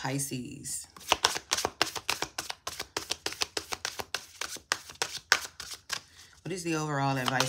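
Playing cards click and slap rapidly as they are shuffled by hand.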